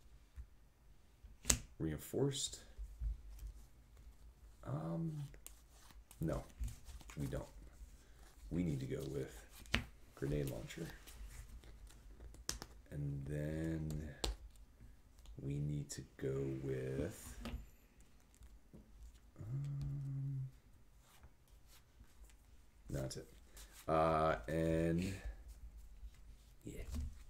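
Playing cards slide and tap on a table mat.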